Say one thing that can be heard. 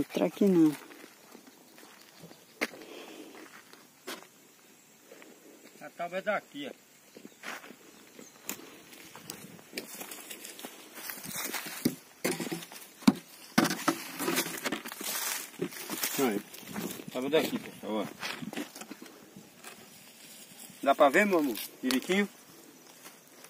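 A man speaks calmly close by, outdoors.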